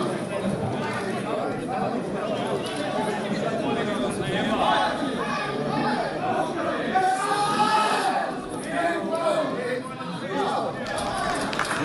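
Football players shout to each other on an open outdoor pitch.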